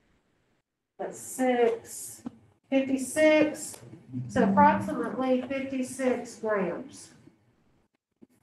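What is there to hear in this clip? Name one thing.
A woman speaks calmly, heard through an online call.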